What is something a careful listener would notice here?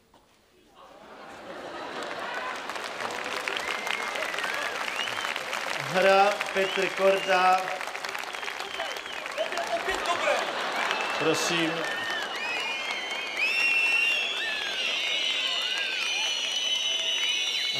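A large crowd cheers and applauds in a big arena.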